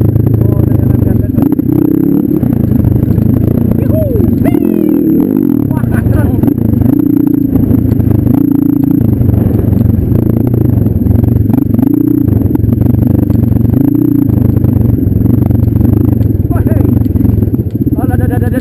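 A dirt bike engine revs up and down close by, rising and falling in pitch.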